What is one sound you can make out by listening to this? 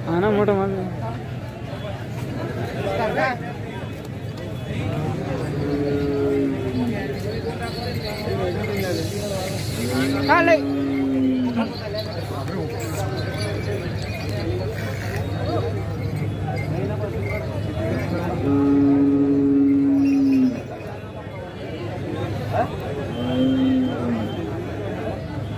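A crowd of men chatters outdoors.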